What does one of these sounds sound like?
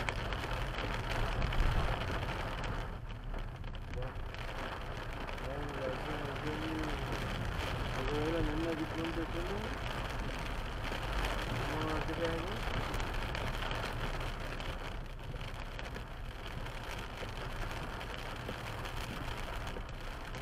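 Wipers swish across a car windscreen.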